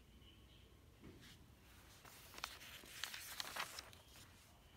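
Paper pages rustle and crinkle as they are handled.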